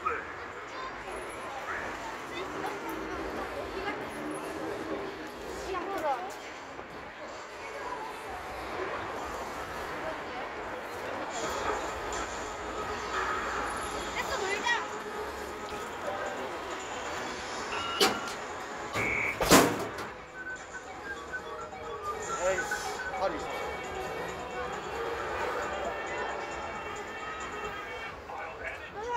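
An arcade machine plays loud electronic jingles.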